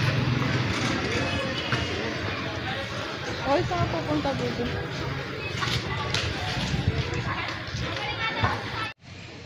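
Children shout and call out in the distance outdoors.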